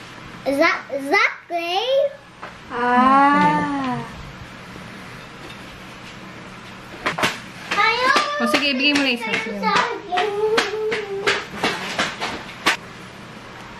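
A young child talks and squeals nearby.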